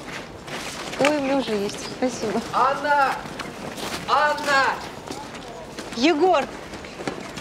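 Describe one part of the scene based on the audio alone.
A young woman speaks cheerfully nearby.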